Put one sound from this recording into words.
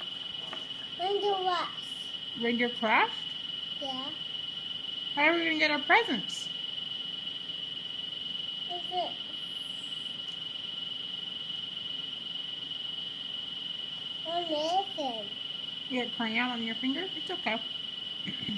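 A young boy talks nearby in a high, animated voice.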